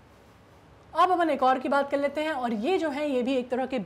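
A young woman speaks clearly into a close microphone, explaining calmly.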